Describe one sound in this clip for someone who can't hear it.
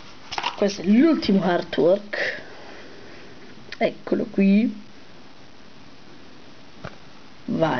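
A paper card rustles as hands turn it over.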